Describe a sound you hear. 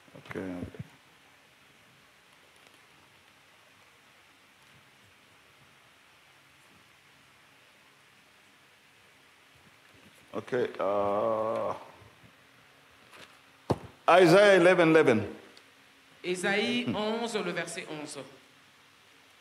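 A man speaks slowly and loudly through a microphone.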